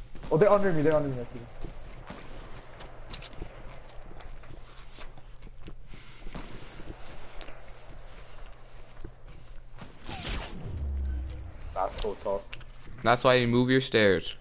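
Footsteps thud on hollow wooden floors.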